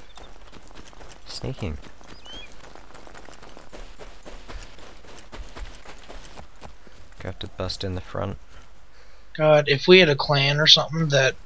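Footsteps crunch quickly over snowy ground.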